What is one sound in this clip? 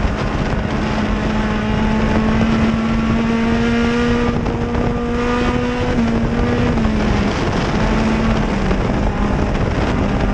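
Dirt and debris rattle against the car's body.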